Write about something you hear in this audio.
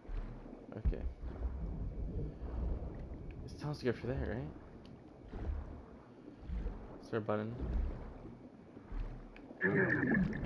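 Water rumbles and gurgles underwater.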